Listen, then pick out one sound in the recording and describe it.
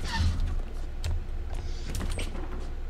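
A swinging metal door bumps open.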